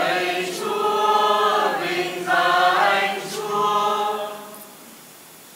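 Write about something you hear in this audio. A young man sings a chant through a microphone.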